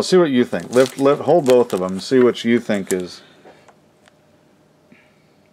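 Hard plastic card cases tap and clack as they are handled.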